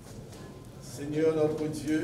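A man chants a prayer aloud in a reverberant hall.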